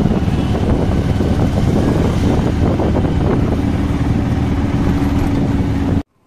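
A small three-wheeler engine rattles and hums steadily while driving.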